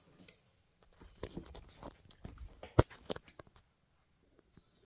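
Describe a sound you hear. A phone rustles and knocks as it is handled.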